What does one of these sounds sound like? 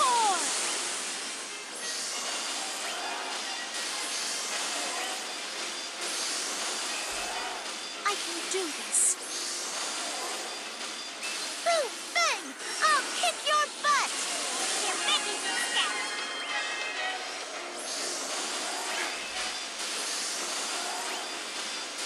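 Game magic attacks whoosh and burst repeatedly.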